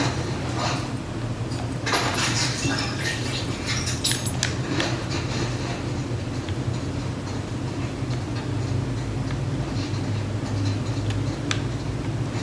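A young woman speaks quietly close to a microphone.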